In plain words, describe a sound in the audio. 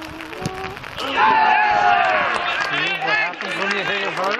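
Men shout and cheer outdoors.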